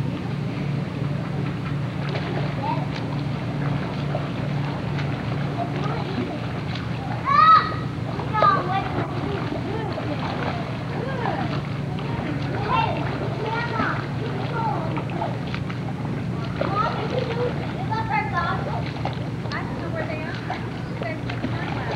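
A child swims, splashing steadily through the water.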